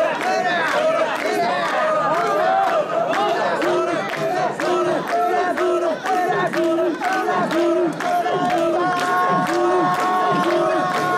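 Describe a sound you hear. A crowd of men chant in rhythm, loud and close.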